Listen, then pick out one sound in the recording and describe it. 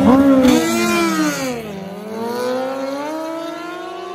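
Two motorcycles roar off and fade into the distance.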